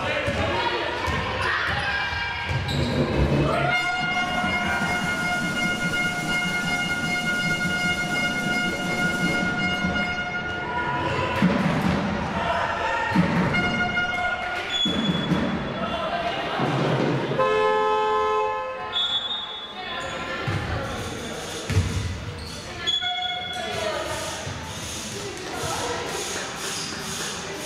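Sneakers squeak on a hard court in an echoing hall.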